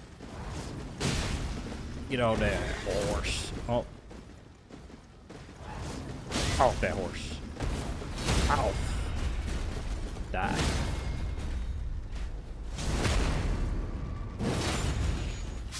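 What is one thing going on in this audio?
Metal weapons clash and slash in a fight.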